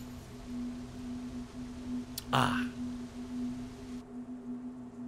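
A waterfall splashes steadily in the distance.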